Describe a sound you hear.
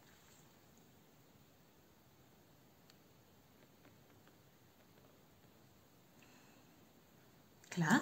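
A woman sniffs deeply at something held to her nose.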